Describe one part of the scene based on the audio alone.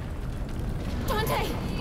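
A young woman speaks breathlessly and close by.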